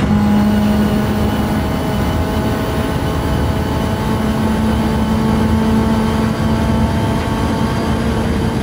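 A racing car engine roars steadily at high speed.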